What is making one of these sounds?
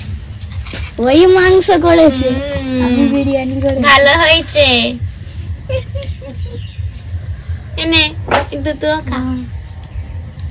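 A young girl speaks with animation close by.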